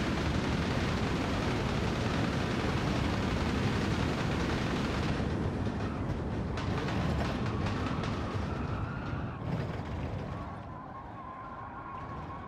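A race car engine roars at high speed, then winds down as the car brakes.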